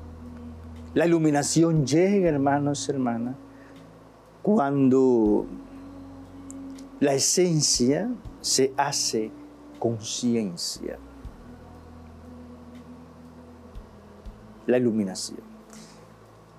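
An elderly man speaks calmly and expressively into a microphone, with pauses.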